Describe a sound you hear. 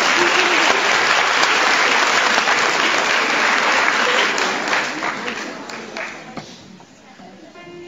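A large crowd applauds loudly in an echoing hall, then the clapping fades away.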